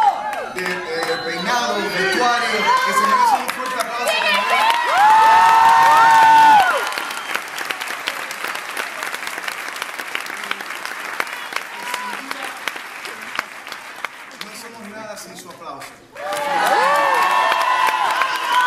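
A crowd claps and applauds loudly.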